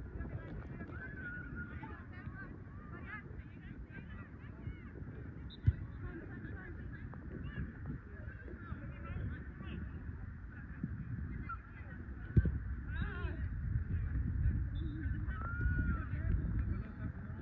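Young women shout to each other across an open field.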